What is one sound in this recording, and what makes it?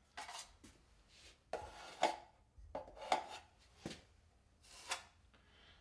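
A metal knife scrapes and clinks against a pan.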